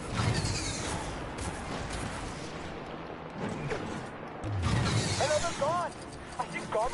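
Explosions boom and crackle in a video game.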